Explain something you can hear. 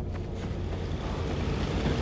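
Debris clatters down.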